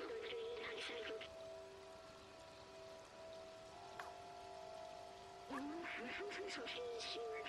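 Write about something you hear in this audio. A young woman speaks close to a headset microphone.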